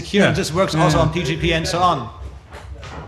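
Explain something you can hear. A man speaks loudly into a microphone, heard through loudspeakers.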